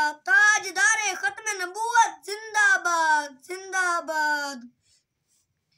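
A boy chants in a high, melodic voice close by.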